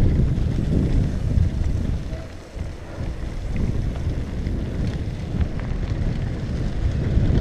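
Bicycle tyres crunch and rattle over dirt and gravel.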